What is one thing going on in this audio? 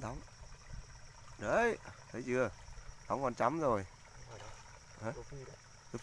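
A hooked fish splashes at the surface of the water.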